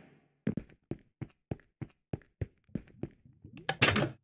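Footsteps tap on a stone floor at a steady pace.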